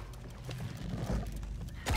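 A bowstring creaks as it is drawn.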